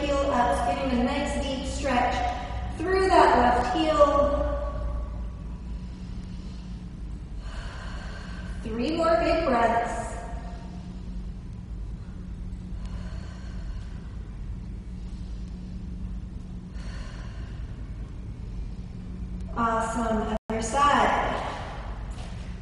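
A young woman speaks calmly, as if giving instructions, close to a microphone.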